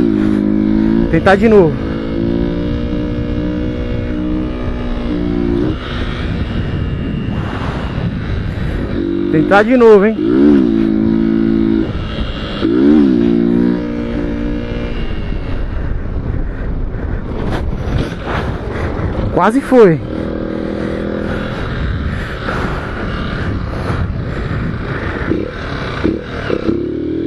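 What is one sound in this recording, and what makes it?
A small motorcycle engine revs and eases off while riding.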